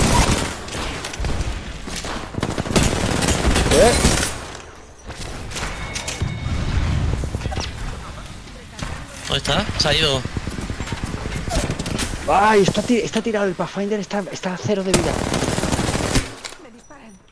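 Automatic gunfire rattles in rapid bursts.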